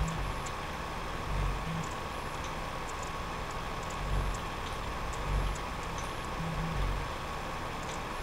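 A video game plane engine drones steadily with a low buzz.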